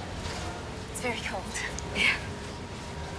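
A young woman laughs softly nearby.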